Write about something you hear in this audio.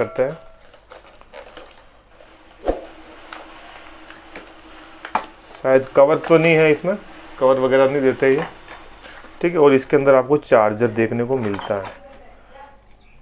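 Cardboard packaging rustles and scrapes under hands.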